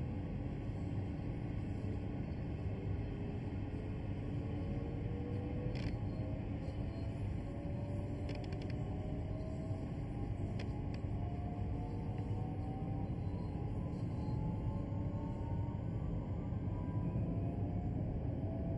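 An electric train's motor whines, rising in pitch as the train speeds up.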